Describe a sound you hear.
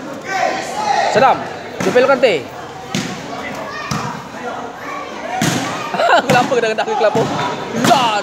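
A basketball bounces on a hard floor.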